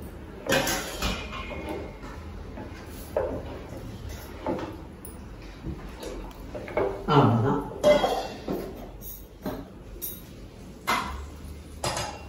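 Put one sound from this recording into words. A ladle scrapes and knocks against a metal pot.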